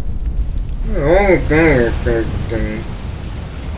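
A dragon lets out a loud, wavering roar.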